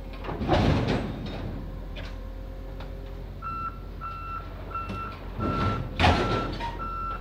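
Metal clanks loudly as a truck bed is lifted from its frame.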